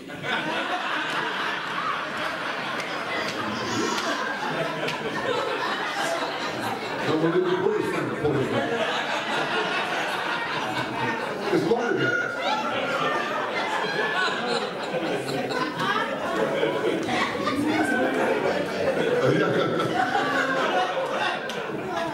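A man preaches with animation through a microphone in a large echoing hall.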